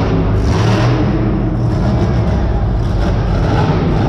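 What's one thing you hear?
A monster truck lands hard with a heavy thud.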